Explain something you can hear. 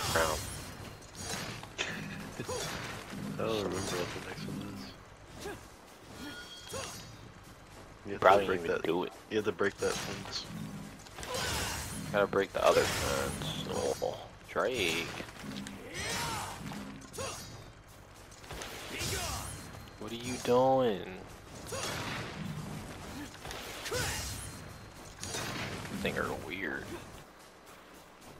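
A sword slashes and strikes enemies again and again.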